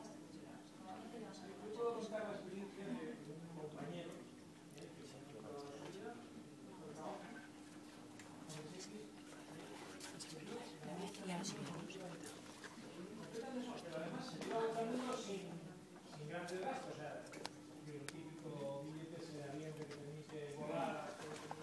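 Several adult men and women talk in turn, heard through a loudspeaker in a room.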